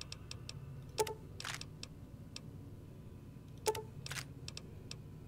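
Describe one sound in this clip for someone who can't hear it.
Short menu clicks sound as items are picked.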